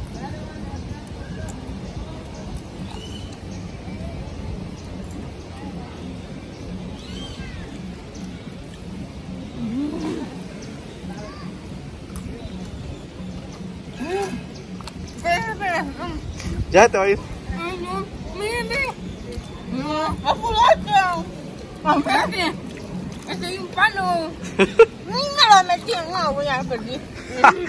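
Shallow water splashes gently.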